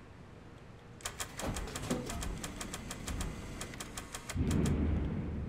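A vending machine clicks and rattles.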